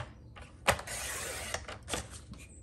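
A paper trimmer blade slides through cardstock.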